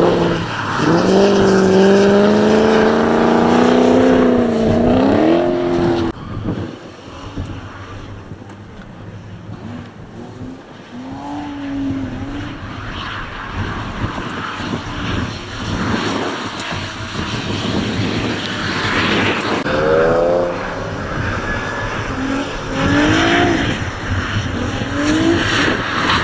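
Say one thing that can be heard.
A car engine revs hard and whines as the car slides through bends.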